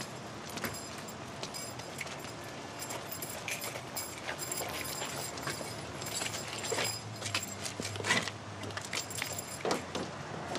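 Footsteps scuff on wet pavement.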